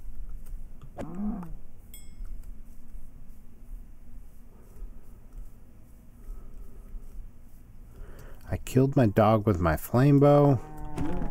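A cow moos.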